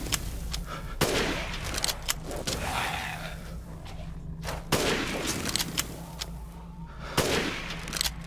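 A rifle fires sharp shots that echo away.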